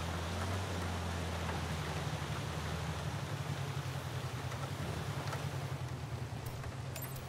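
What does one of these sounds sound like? A van engine hums steadily as it drives.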